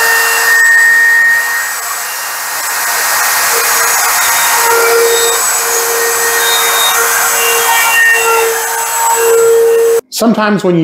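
A power grinder whines loudly as it cuts through a hard countertop edge.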